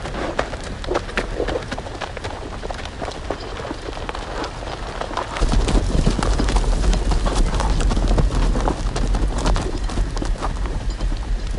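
Horses' hooves clop on the ground.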